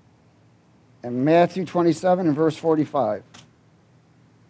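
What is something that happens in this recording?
A middle-aged man speaks into a microphone in a calm, measured voice.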